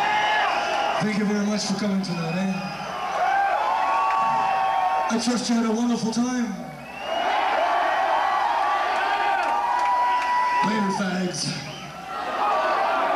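A man shouts into a microphone through loud speakers.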